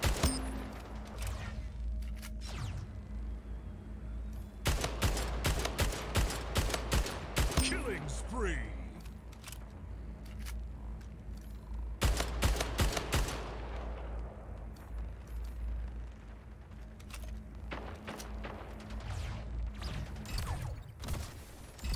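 Rapid gunfire cracks in bursts from a video game.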